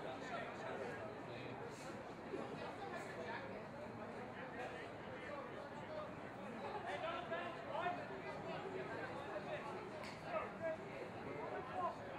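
Rugby players shout and call out to each other.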